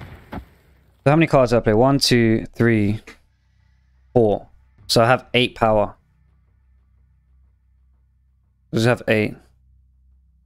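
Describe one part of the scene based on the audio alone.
A man speaks with animation into a close microphone, in short bursts.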